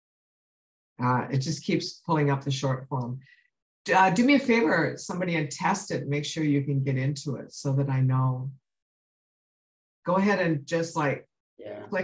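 A middle-aged woman speaks calmly through a microphone, as on an online call.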